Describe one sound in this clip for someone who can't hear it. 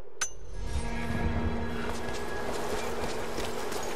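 A woman's footsteps scuff on rocky ground.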